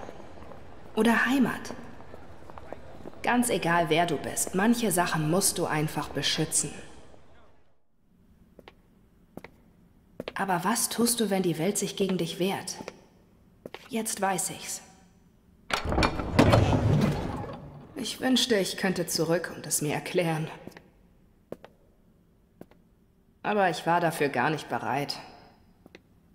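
A young woman speaks softly and calmly.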